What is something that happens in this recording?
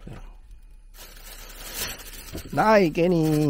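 A plastic egg tray crinkles in a hand.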